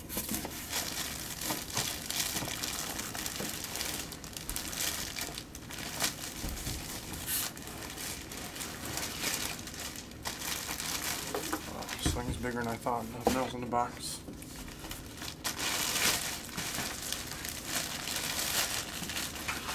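A plastic bag crinkles and rustles loudly.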